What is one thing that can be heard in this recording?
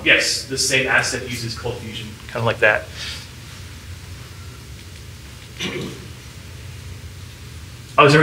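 A man lectures through a microphone, speaking in short bursts with pauses.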